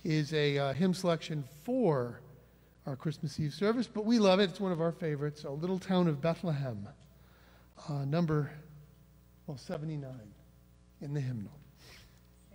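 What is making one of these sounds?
A small group of men and women sing together through microphones.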